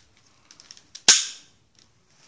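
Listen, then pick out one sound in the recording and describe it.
A pistol gives one sharp click.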